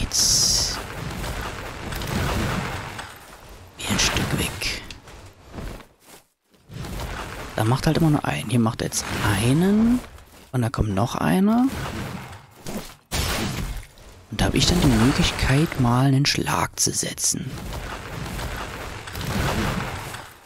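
Ice shatters and crashes in heavy bursts.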